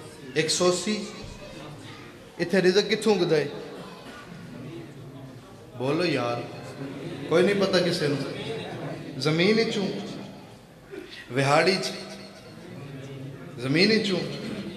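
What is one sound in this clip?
A young man speaks passionately into a microphone, his voice rising and falling in long, echoing phrases over loudspeakers.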